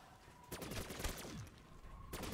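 An electric weapon fires with a crackling zap.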